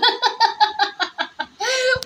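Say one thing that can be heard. A small child laughs.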